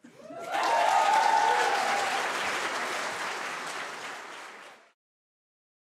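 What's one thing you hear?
An audience applauds in a large hall, then the sound stops abruptly.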